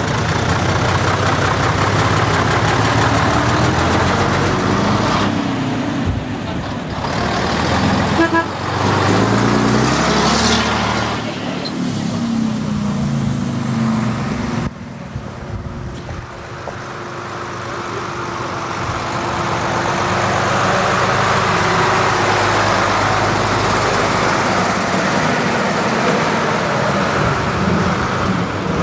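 Heavy diesel lorry engines rumble and chug past at close range.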